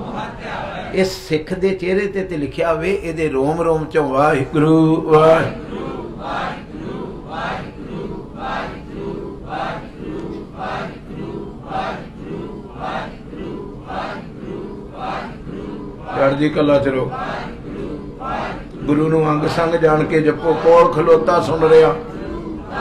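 An elderly man sings loudly through a microphone.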